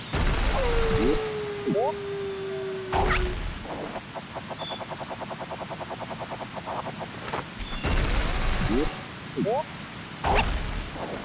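A video game plays whooshing and twanging sound effects.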